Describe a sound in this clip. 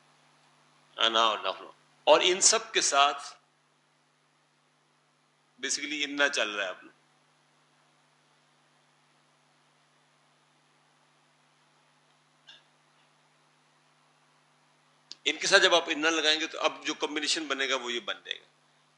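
An elderly man speaks in short bursts, explaining calmly and close by.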